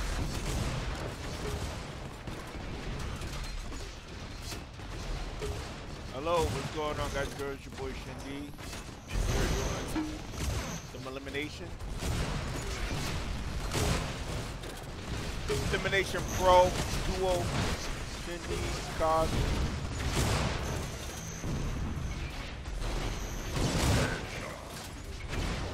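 Sci-fi video game weapons fire in bursts.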